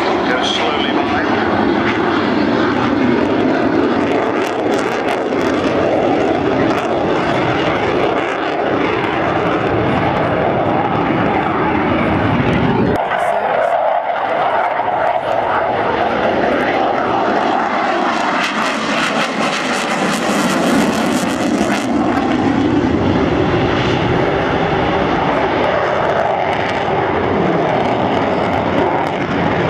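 A jet engine roars loudly overhead, its rumble shifting as the jet banks and turns.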